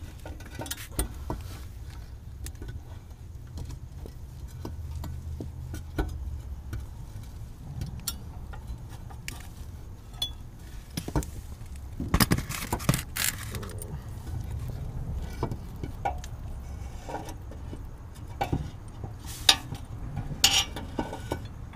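Metal parts clink and knock under a car.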